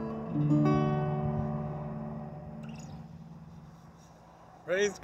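An acoustic guitar chord is strummed once and rings out slowly.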